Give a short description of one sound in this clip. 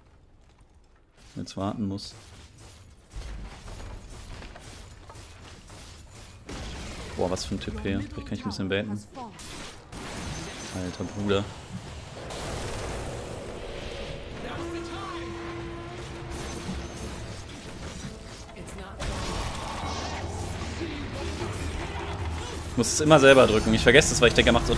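Video game spells and weapons clash in bursts of fighting.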